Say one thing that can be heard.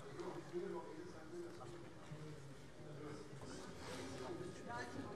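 A middle-aged woman speaks into a microphone in a large echoing hall.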